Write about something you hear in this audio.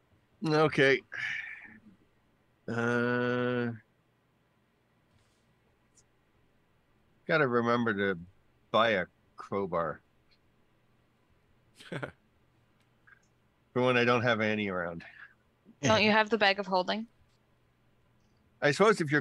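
A middle-aged man speaks with animation into a close microphone, heard over an online call.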